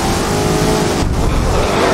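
A racing car engine briefly cuts out and roars again as the gear shifts down.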